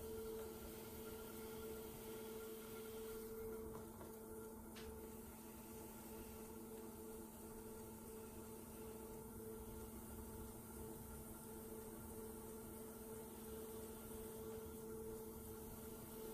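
A pottery wheel motor hums steadily.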